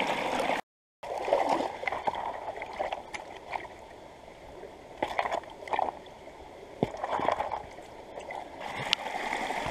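A stream flows gently outdoors.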